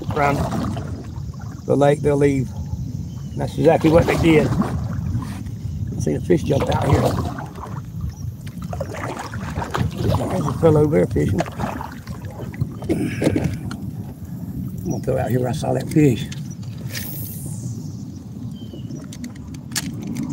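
Wind blows outdoors across open water.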